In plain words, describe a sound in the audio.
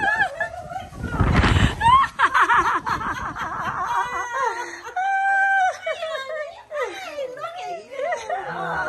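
An elderly woman cries out and laughs with delight close by.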